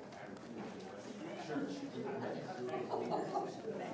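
A crowd of people murmurs and chatters in a large echoing room.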